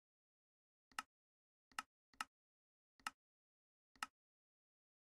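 Short clicks tap several times.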